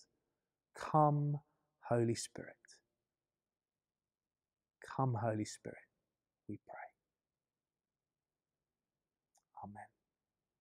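A middle-aged man speaks calmly and expressively into a microphone, with pauses.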